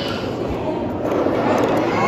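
A toy top spins and rattles on a hard surface.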